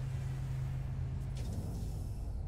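A ship's engine hums low and steady.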